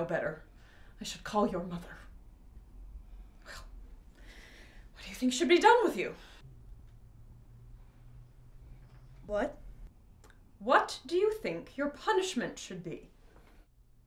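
A middle-aged woman speaks earnestly, close by.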